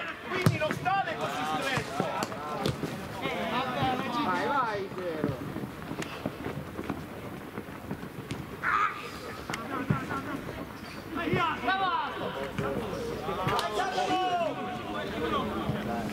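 Men shout and call out to each other across an open outdoor field.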